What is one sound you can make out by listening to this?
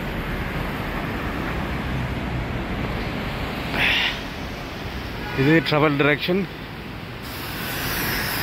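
Traffic rumbles steadily along a busy road.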